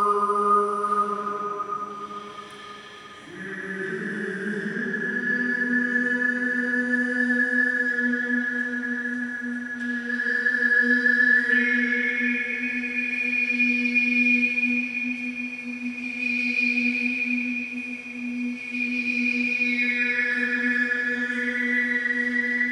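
Wind instruments play a slow folk melody over a steady drone, echoing in a large hall.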